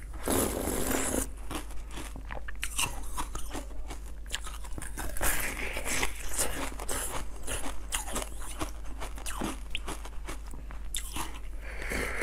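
A young woman bites and chews soft food wetly and close to a microphone.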